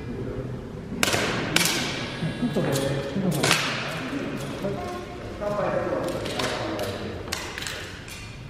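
Sharp shots crack and ring out in a large echoing hall.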